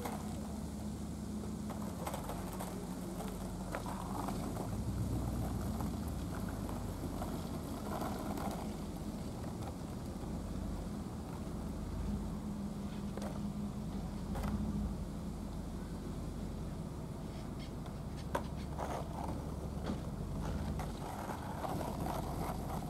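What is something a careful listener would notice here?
Wind blows outdoors with a low rumble.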